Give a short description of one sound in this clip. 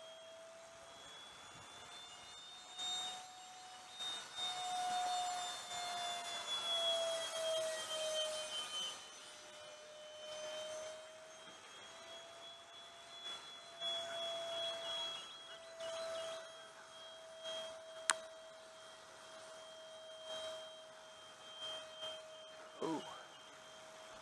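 An electric motor whines steadily, its pitch rising and falling slightly.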